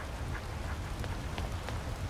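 Fire crackles in a brazier.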